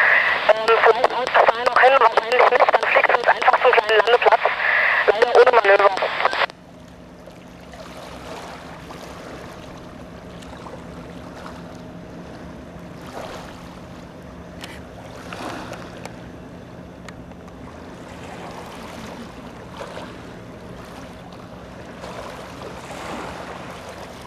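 A motorboat engine drones far off across the water.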